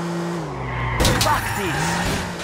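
A car crashes with a loud bang and crunch of metal.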